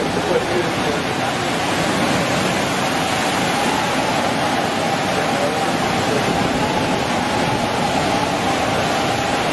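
Heavy storm surf crashes against a seawall.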